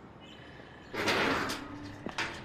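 A metal gate rattles as it is pushed open.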